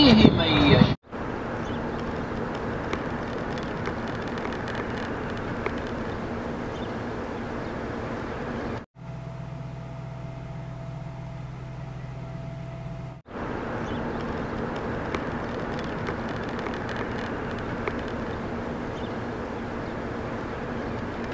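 A large flock of pigeons flaps and flutters its wings.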